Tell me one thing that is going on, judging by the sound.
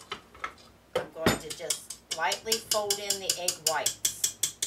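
A spatula scrapes and taps against a metal bowl.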